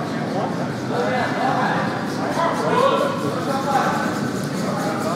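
Several men talk in a large echoing hall.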